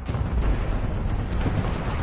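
Gunfire cracks in rapid bursts.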